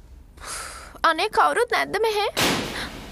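A young woman speaks close by with animation.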